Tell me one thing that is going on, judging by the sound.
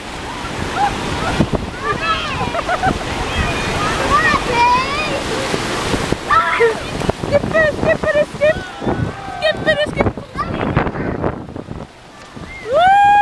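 Legs splash through shallow water.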